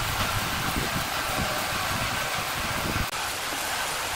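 A sawmill engine rumbles steadily.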